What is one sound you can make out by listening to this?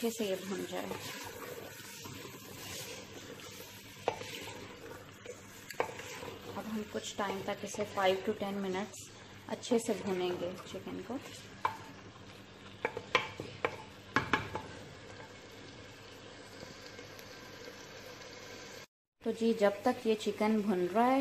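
A wooden spoon stirs and scrapes food in a clay pot.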